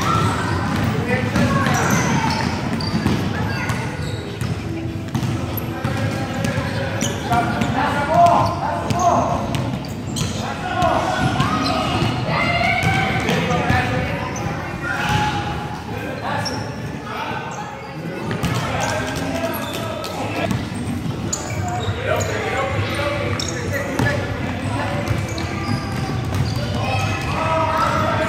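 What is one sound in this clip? Children shout and chatter excitedly in a large echoing hall.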